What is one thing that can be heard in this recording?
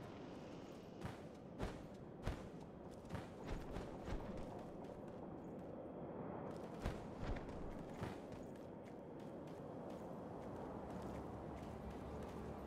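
Footsteps crunch on rock and gravel.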